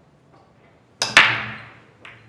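A cue strikes a ball with a sharp crack.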